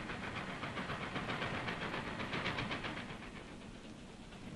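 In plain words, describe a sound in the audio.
A steam locomotive chugs along in rapid, rhythmic puffs.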